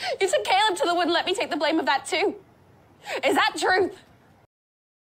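A young woman speaks softly and urgently, heard through a loudspeaker.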